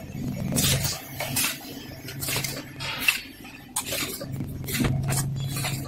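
A packaging machine clatters and hisses steadily.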